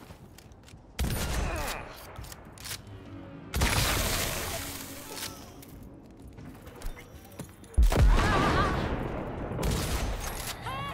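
Gunshots and explosions boom in loud bursts.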